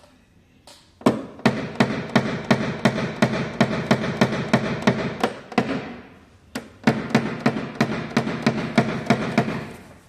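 A small tool taps rapidly and steadily on a metal car panel, with a short ringing after each tap.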